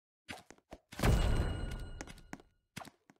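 A game reward jingle plays as a prize is revealed.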